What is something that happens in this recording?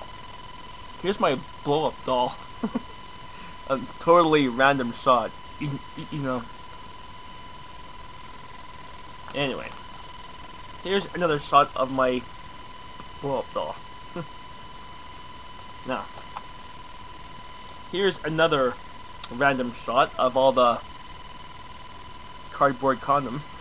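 A young man talks casually and close up into a webcam microphone.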